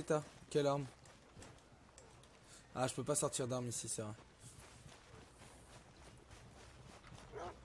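Footsteps run over grass.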